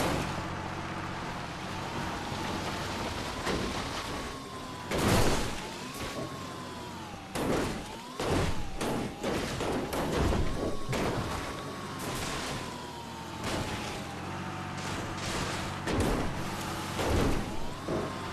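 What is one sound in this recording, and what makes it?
A small cart's engine hums steadily.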